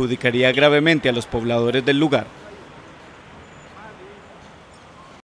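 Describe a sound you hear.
Vehicles drive slowly along a busy street.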